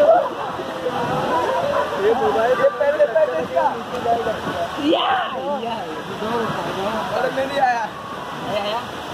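Several young men talk and laugh loudly close by.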